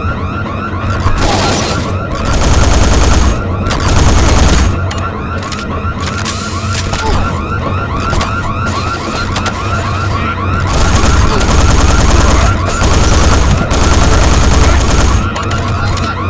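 A rifle fires rapid bursts that boom loudly.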